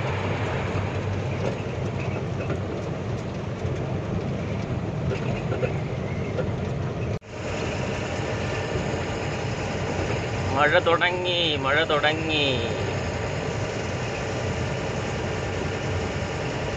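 An engine hums steadily with road noise as a vehicle drives along.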